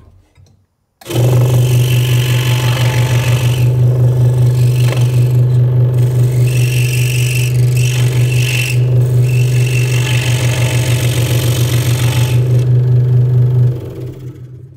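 A scroll saw buzzes steadily as it cuts through wood.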